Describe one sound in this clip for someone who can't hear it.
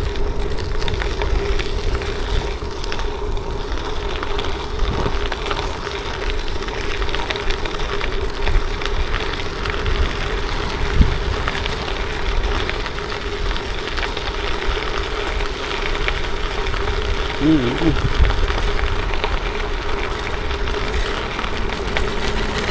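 Bicycle tyres crunch steadily over gravel.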